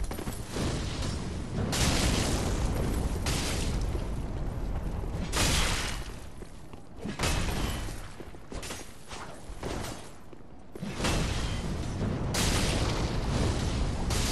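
A fireball bursts with a roaring whoosh.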